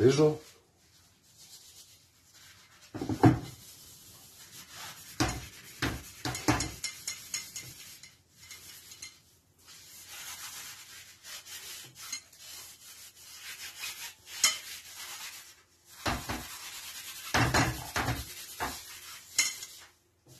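A stick stirs and scrapes inside a plastic bucket.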